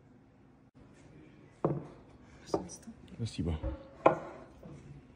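A plate is set down on a wooden table with a soft clatter.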